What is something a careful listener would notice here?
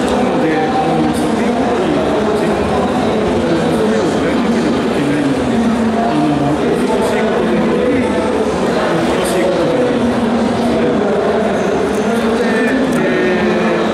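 A man talks with animation into a microphone, heard through loudspeakers in a large open space.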